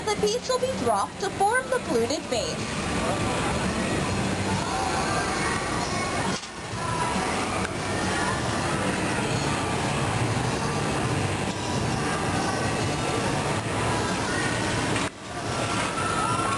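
A glass furnace roars steadily.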